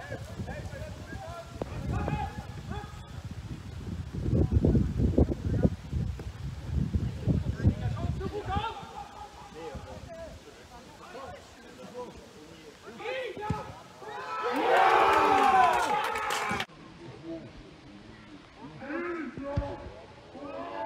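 Male players shout across a football pitch in the distance.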